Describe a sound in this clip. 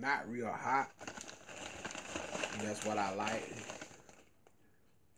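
A crisp packet crinkles and rustles.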